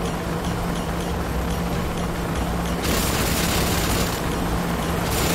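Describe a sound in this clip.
A flying machine's rotors whir and hum steadily nearby.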